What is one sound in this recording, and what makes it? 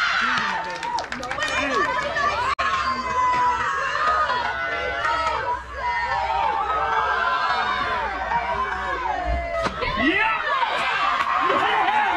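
Young players shout and cheer across an open field.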